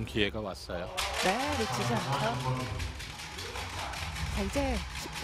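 A small crowd claps and bangs noisemakers.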